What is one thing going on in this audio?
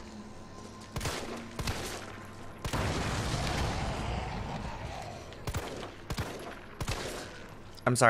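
A handgun fires sharp, loud shots.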